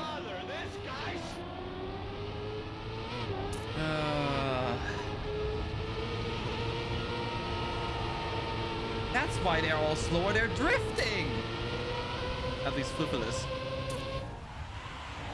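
A racing car engine whines steadily and rises in pitch.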